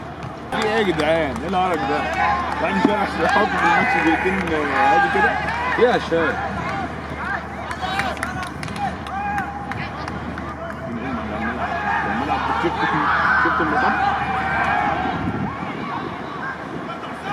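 Men shout and call out in an open outdoor space.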